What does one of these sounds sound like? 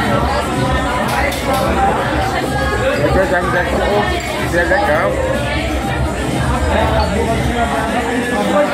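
A man talks close to the microphone in a casual, animated tone.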